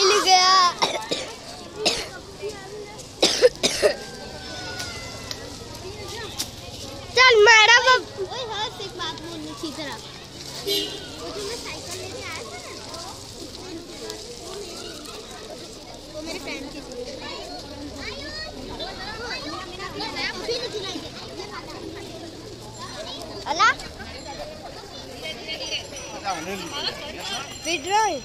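A crowd of men and women chatters and calls out all around, outdoors.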